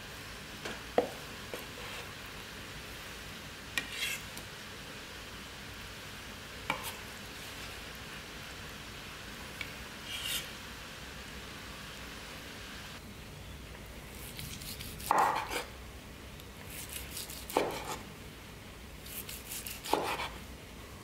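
A knife blade knocks against a wooden board.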